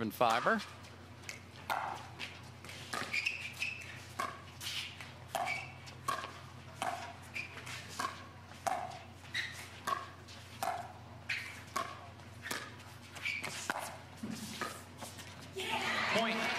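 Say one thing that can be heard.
Paddles pop against a plastic ball in a quick rally.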